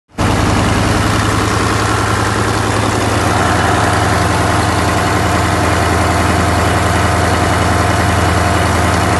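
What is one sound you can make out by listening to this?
An engine idles close by with a steady, low rumble.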